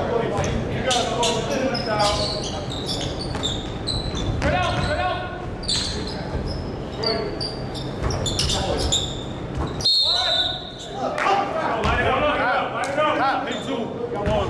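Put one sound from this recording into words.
Men call out to each other across an echoing gym.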